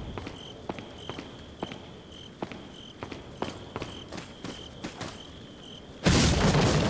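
Footsteps crunch steadily on the ground.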